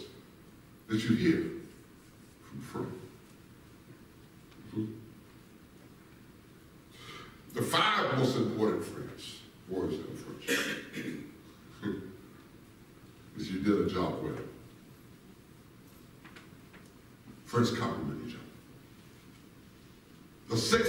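A man speaks slowly and with feeling through a microphone in a large echoing hall.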